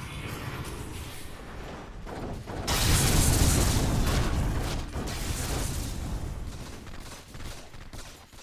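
Game spell effects crackle and burst during a battle.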